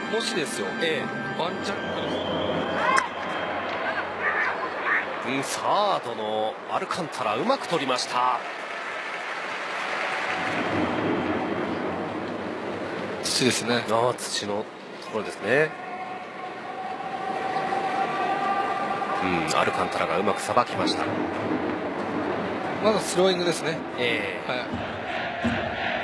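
A crowd cheers steadily in a large stadium.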